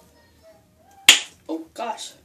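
A plastic bottle cap snaps open.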